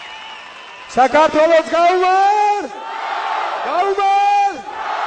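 A man shouts with energy into a microphone over loudspeakers.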